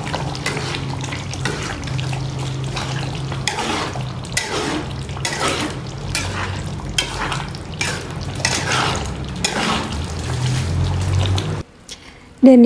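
Thick sauce sizzles and bubbles in a pan.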